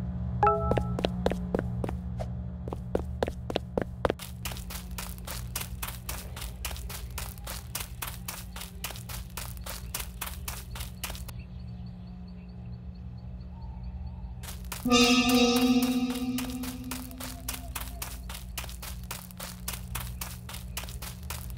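Footsteps tap steadily on a hard surface.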